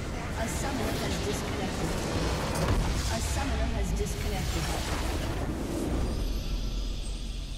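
Loud game explosions and spell effects crash and roar.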